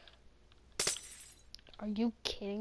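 Glass shatters in a video game.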